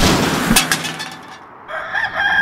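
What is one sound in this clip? A metal can rolls and clatters on pavement.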